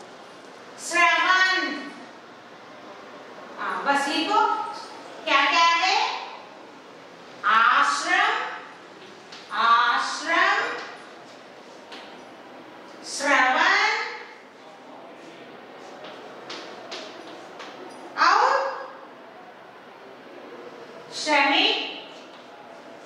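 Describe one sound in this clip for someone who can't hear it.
A woman speaks slowly in short, separate phrases, as if dictating.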